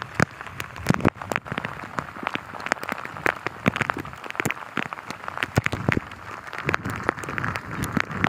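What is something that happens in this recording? Heavy rain pours down outdoors, with drops pattering close by.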